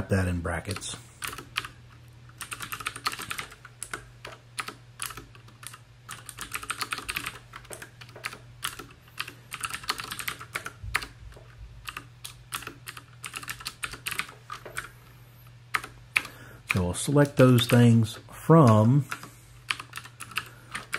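Keys clatter on a keyboard in quick bursts.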